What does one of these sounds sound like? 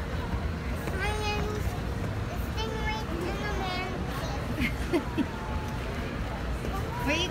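A young child babbles in a high voice.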